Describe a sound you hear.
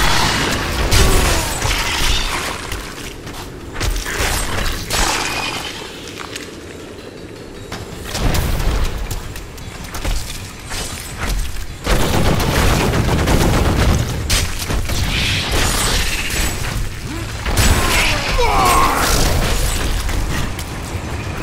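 Spells and weapon blows crash and boom in rapid bursts.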